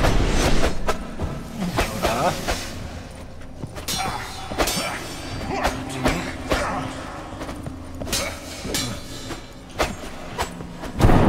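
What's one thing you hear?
Blades strike a creature with sharp hits.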